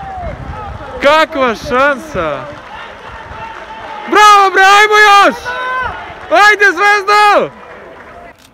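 A young man sings and shouts loudly close by.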